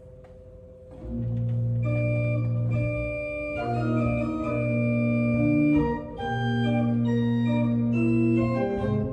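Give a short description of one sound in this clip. A pipe organ plays full, sustained chords in a reverberant room.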